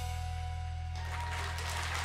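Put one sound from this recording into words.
A balalaika plays a ringing chord on stage.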